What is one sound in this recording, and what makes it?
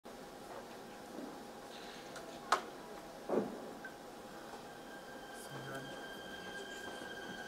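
Orchestra musicians softly tune their instruments in a large hall.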